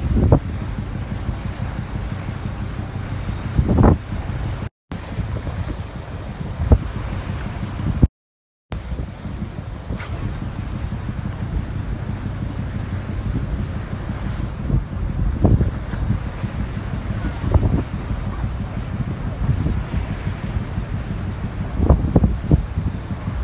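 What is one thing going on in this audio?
A large ship's engines rumble low and steadily.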